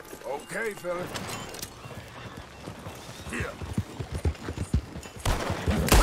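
Horse hooves clop along the ground.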